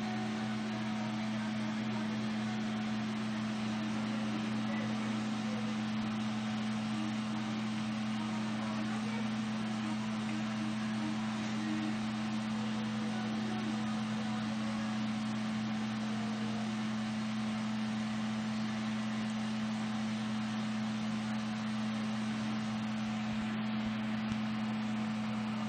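Broth bubbles and simmers steadily in a pan.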